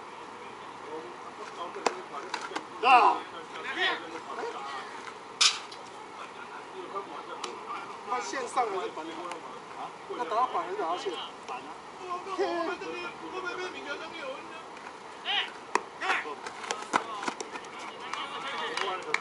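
Men call out and talk across an open ball field.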